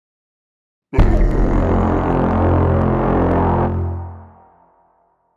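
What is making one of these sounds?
A cartoon monster roars loudly.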